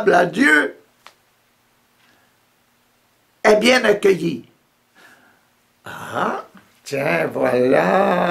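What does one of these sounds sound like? An elderly man talks close up, in short bursts with pauses.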